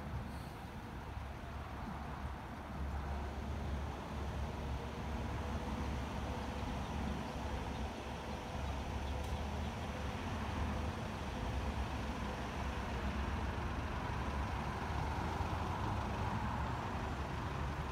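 A bus engine idles with a low, steady rumble nearby.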